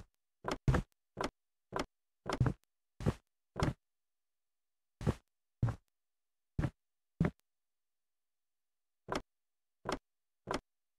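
A paint roller swishes in short strokes.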